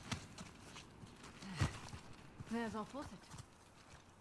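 Footsteps run through grass and brush.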